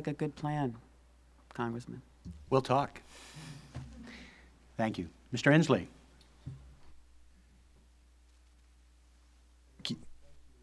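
A man speaks through a microphone in short bursts, with pauses.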